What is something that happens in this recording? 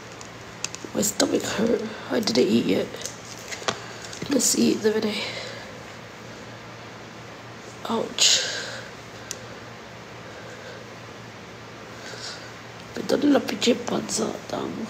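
A young woman talks casually in short bursts, close to a phone microphone.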